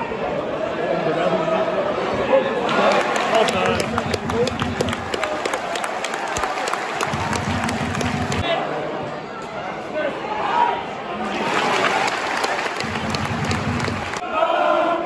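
A large stadium crowd cheers and chants loudly outdoors.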